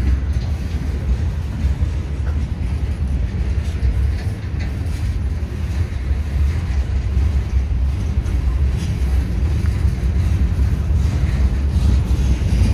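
A freight train rumbles past close by, with a steady deep roar.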